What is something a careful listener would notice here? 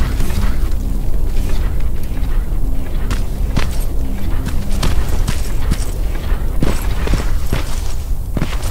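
Footsteps crunch steadily on gravel and rubble.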